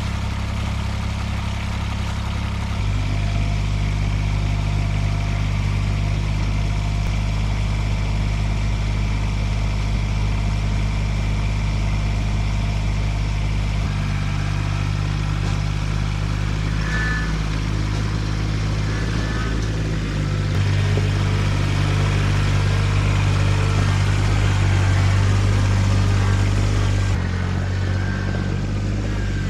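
A small tractor engine runs with a steady low rumble.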